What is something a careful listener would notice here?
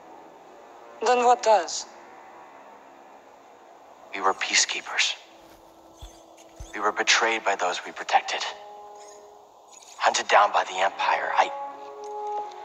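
A young man speaks earnestly in reply.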